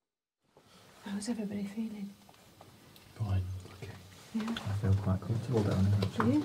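A woman speaks in a hushed, tense voice close by.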